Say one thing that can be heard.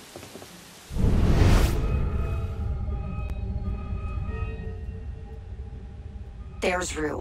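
Wind rushes loudly past during a long fall.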